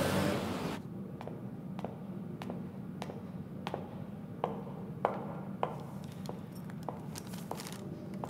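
Footsteps echo along a hallway.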